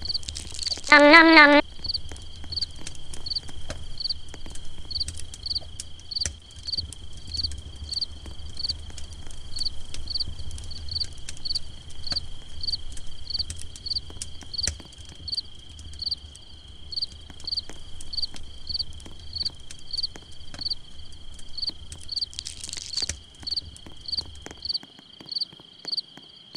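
Game footsteps patter quickly and evenly.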